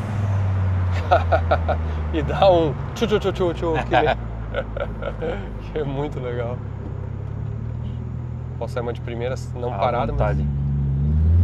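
Two men talk close by.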